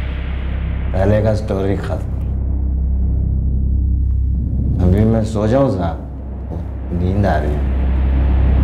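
A young man speaks slowly and weakly, close by.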